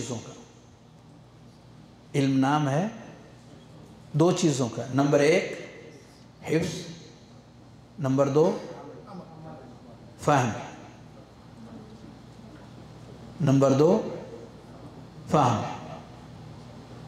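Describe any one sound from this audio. An elderly man speaks calmly into a microphone in short phrases with pauses.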